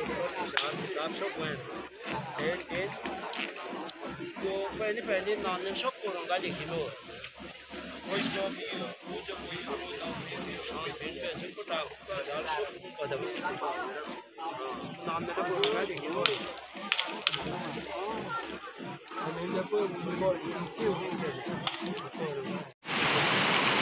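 Several adult men talk casually nearby outdoors.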